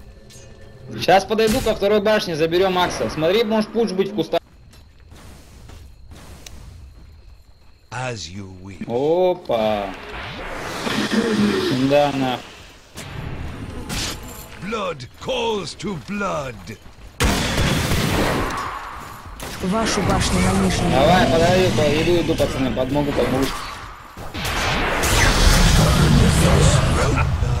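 An elderly man talks with animation close to a microphone.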